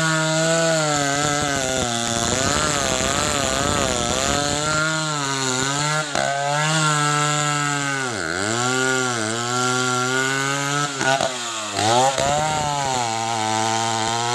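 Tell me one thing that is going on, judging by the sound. A chainsaw engine runs loudly close by, revving up and down.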